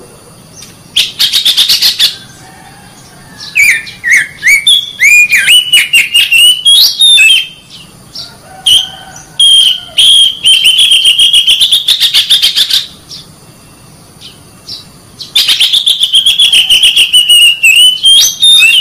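A songbird makes rapid chattering trills.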